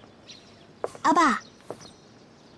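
A young woman calls out gently.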